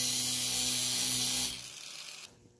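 An angle grinder cuts metal with a loud, high whine.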